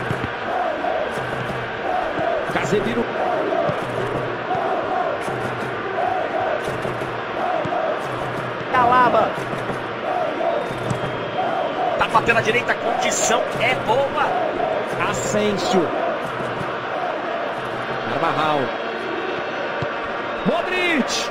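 A large stadium crowd chants and sings in a steady rhythm.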